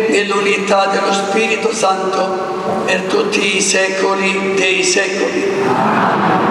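A group of men sing together in a large echoing hall.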